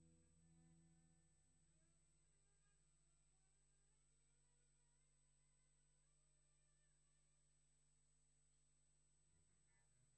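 A jazz band plays softly.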